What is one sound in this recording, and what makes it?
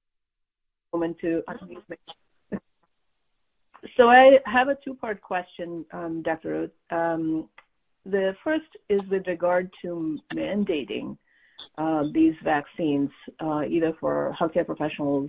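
An older man speaks at length over an online call.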